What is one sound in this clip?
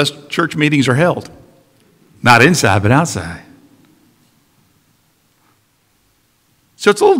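A man speaks calmly through a microphone in a reverberant hall.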